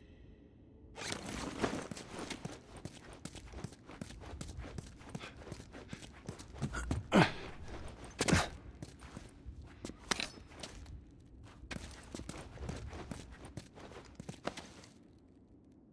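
Footsteps tread across a hard floor indoors.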